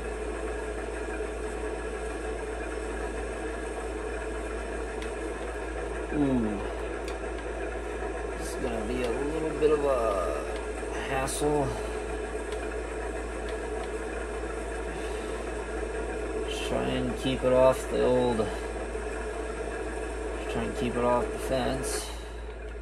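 A combine harvester engine drones steadily through a television speaker.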